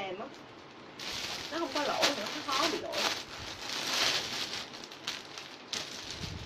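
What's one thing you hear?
Fabric rustles as a dress is handled.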